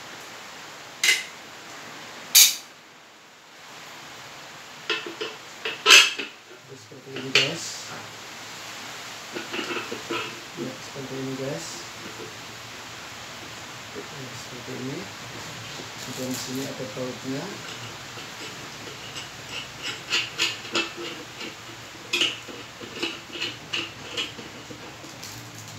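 Plastic parts click and snap as a man fits them together.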